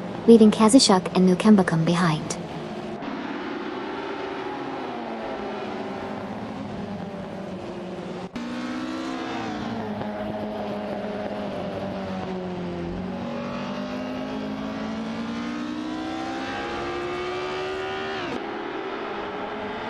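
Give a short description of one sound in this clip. Racing car engines roar and whine, rising and falling in pitch as gears change.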